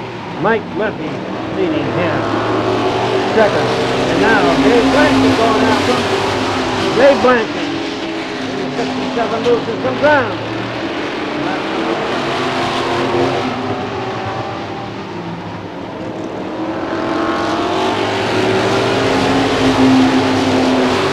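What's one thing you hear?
Several race car engines roar as the cars speed around a track.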